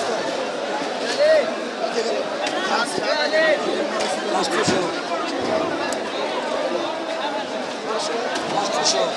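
A crowd of men talk over one another nearby.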